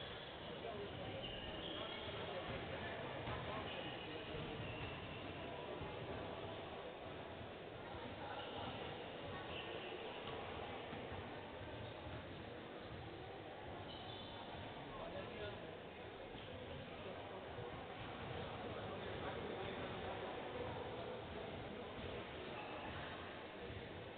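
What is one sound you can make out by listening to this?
Several men talk and chatter in a large echoing hall.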